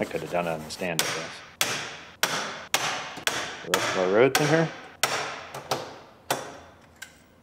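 A hand tool knocks sharply against metal again and again, ringing in an echoing room.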